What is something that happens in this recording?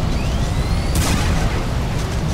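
A gun fires a single sharp shot.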